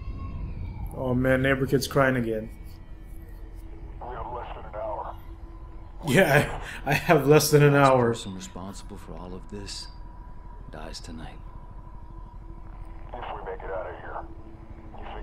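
A man speaks firmly and close by.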